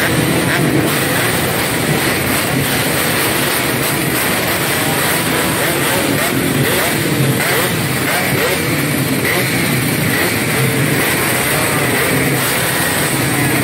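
Motorcycle engines idle and rev nearby.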